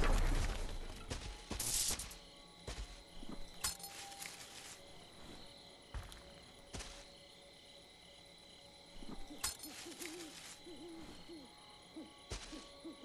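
Footsteps crunch on dry leaves and grass.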